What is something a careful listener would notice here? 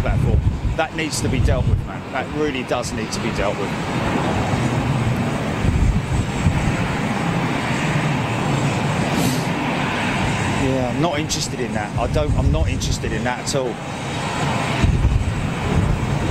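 Jet engines whine and rumble steadily as an airliner taxis nearby.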